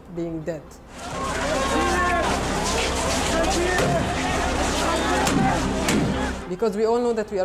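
A crowd shouts and clamours outdoors.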